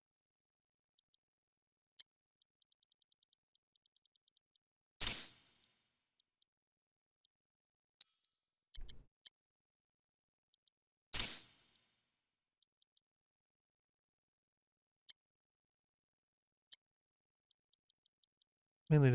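Short, quiet menu blips tick rapidly as a cursor moves through a list.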